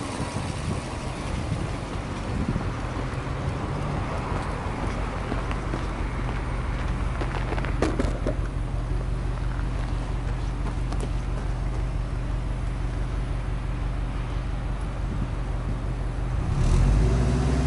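A car engine idles with a steady, low rumble.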